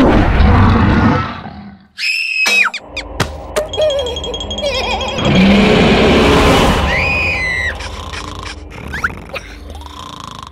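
A cartoon creature squeals and shrieks in a high, excited voice.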